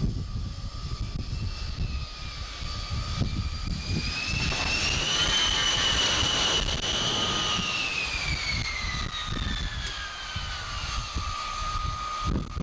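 A jet aircraft's engines whine loudly as it approaches and lands, the pitch rising and then slowly falling away.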